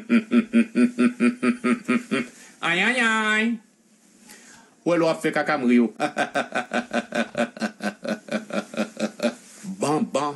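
A young man laughs loudly in quick bursts.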